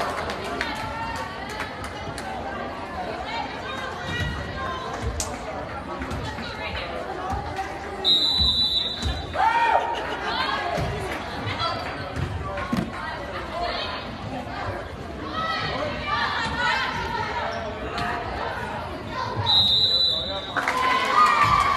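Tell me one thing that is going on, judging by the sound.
A volleyball thumps off players' hands and arms.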